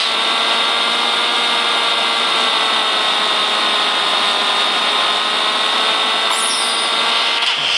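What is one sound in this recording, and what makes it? A motorcycle engine whines steadily at high speed.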